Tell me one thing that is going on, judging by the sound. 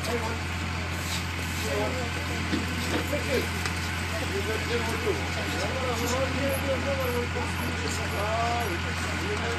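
Concrete rubble crunches and clatters as an excavator digs into it.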